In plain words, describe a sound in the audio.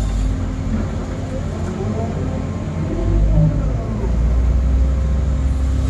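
Hydraulics whine as an excavator arm moves.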